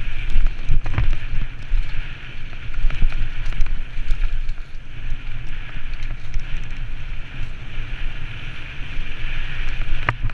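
Tyres crunch and rattle over a rough dirt trail.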